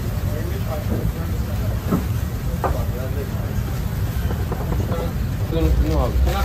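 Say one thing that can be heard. Meat sizzles over hot coals.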